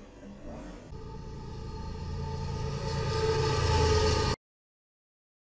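A diesel locomotive rumbles loudly as it passes close by.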